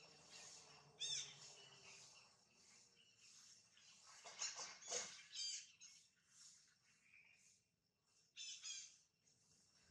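A baby monkey squeaks shrilly up close.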